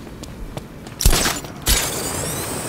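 A loud whooshing burst rushes past as a runner speeds up.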